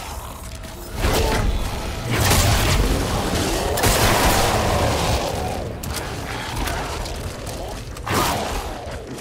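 A weapon fires in loud bursts.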